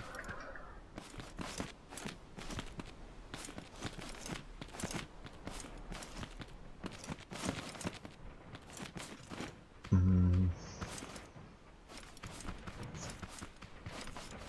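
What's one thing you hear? Footsteps patter steadily in a quick rhythm.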